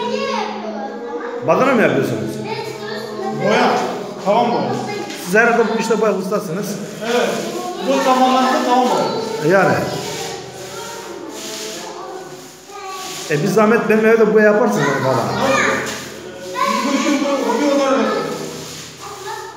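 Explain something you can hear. A young man sings loudly close by in an echoing empty room.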